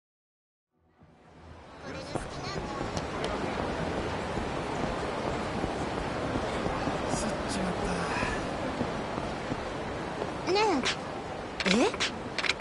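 Busy city street noise murmurs steadily.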